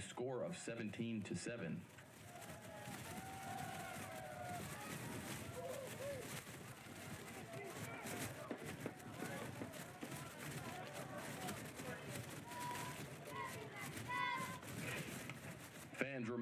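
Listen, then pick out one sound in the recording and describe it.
A crowd of spectators murmurs and calls out across an open field.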